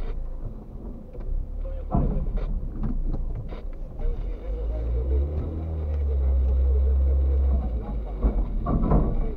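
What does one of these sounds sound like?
A car engine idles with a low, steady rumble.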